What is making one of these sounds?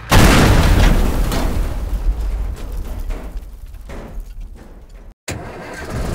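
A crash and rumble of vehicles smashing together, fading away.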